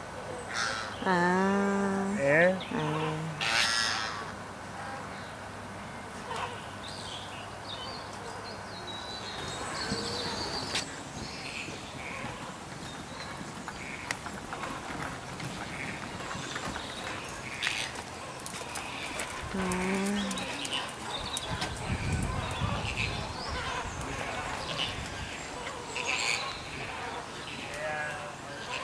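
A flock of flamingos honks and chatters nearby, with loud calls at times.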